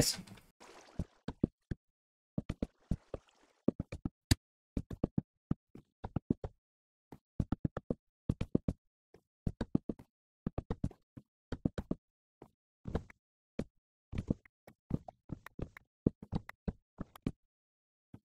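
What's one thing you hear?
Blocks of wood are chopped with quick, repeated knocks in a game.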